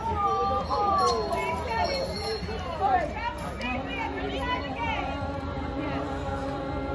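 A group of men and women sing together outdoors.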